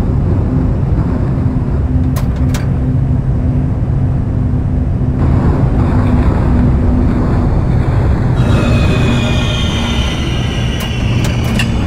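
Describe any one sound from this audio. A subway train rumbles and clatters along the tracks.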